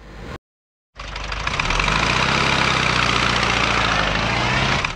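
An ambulance engine rumbles as it drives away.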